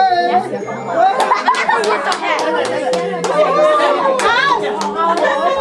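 A man claps his hands in rhythm.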